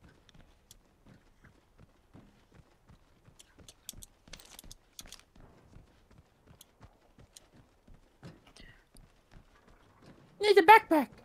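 Footsteps patter quickly on a hard floor.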